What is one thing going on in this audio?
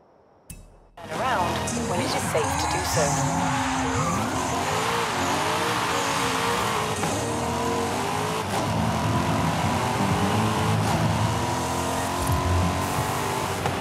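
A sports car engine roars as it accelerates hard.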